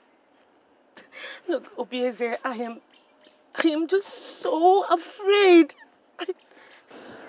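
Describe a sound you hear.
A young woman speaks tearfully, her voice breaking and wavering.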